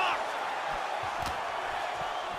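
A knee strike lands with a heavy thud.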